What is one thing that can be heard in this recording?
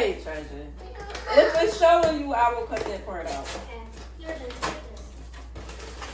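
A cardboard box rustles in a woman's hands.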